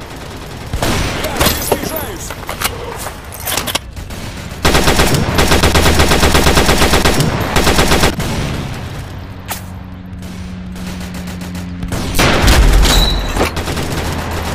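A gun fires single loud shots.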